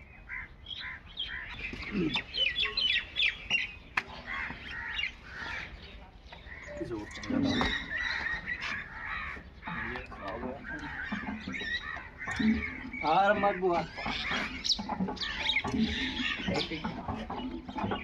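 Men talk with each other nearby, calling out.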